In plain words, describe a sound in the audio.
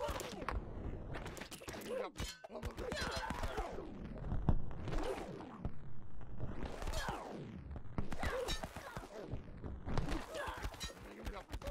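Arrows thud into bodies in a video game battle.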